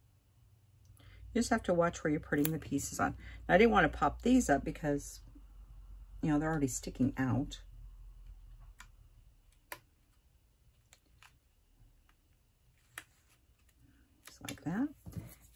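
Paper and card rustle and tap softly as small pieces are handled and pressed down.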